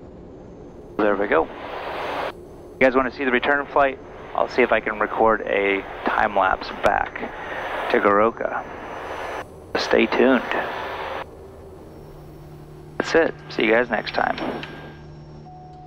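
A man speaks calmly through a headset microphone.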